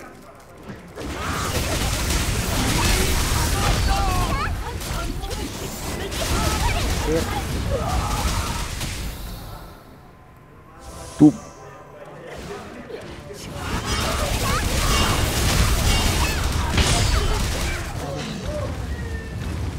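Magic blasts and sword hits crash and boom in a fast fight.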